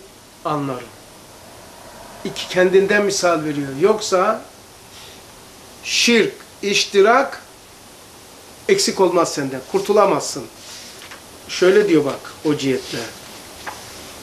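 An elderly man speaks calmly and slowly into a nearby microphone.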